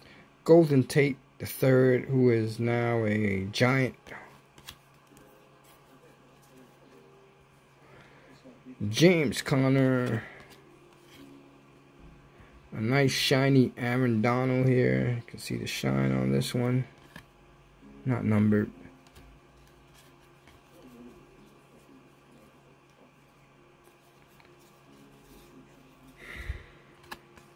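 Trading cards rustle and slide against each other in a stack.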